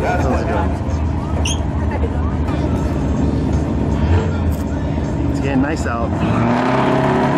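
Race car engines idle with a deep, rough rumble.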